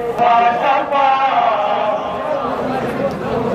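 A man chants loudly in a drawn-out, sung voice.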